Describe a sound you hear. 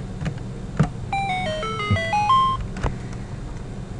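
A rising chiptune jingle plays.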